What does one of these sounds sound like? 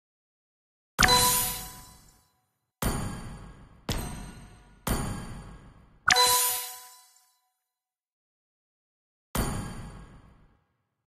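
Short bright game interface chimes ring out several times, each fading quickly.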